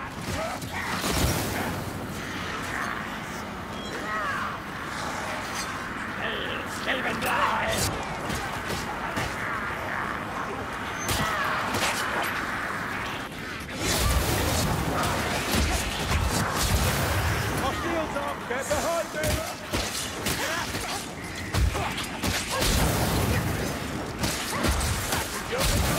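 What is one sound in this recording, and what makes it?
Creatures snarl and shriek as they attack.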